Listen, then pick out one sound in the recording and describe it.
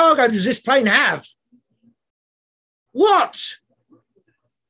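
A man speaks with animation into a microphone, in short bursts.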